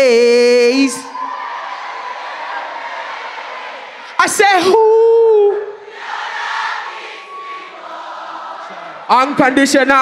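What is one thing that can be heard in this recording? An audience cheers and shouts.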